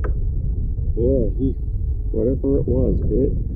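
A man speaks casually, close to the microphone.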